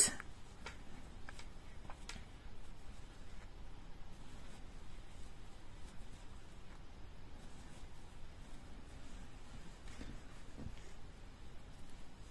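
A crochet hook softly clicks and rubs against yarn.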